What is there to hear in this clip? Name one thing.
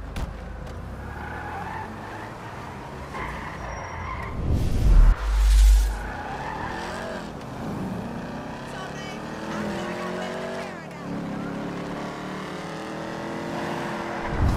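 A car engine revs and roars as the car speeds away.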